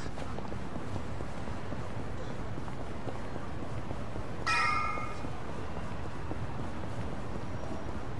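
Footsteps run quickly on pavement.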